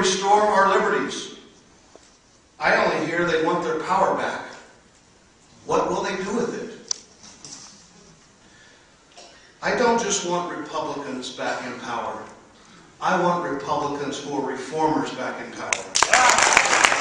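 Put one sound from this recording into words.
A man speaks over a microphone in a formal, measured way, with pauses.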